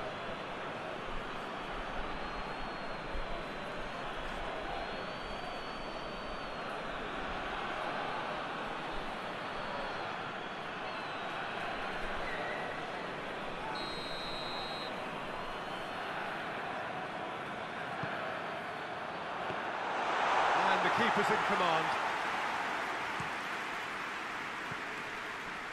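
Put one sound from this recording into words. A large stadium crowd roars steadily, swelling louder for a moment.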